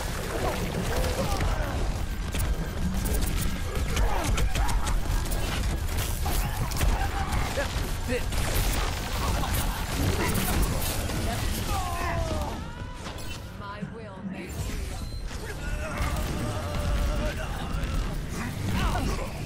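Rapid video game gunfire and blasts crackle.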